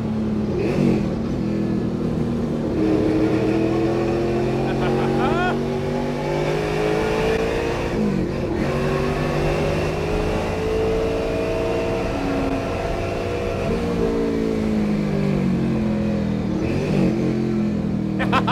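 A car engine roars loudly, revving up and down as gears shift.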